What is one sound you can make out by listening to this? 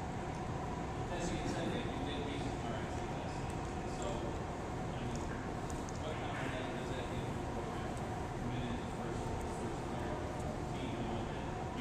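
A man talks with animation nearby, in a large echoing hall.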